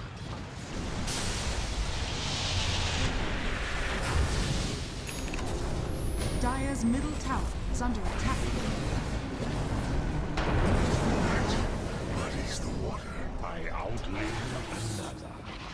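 Spells crackle and explode in a fast fantasy battle.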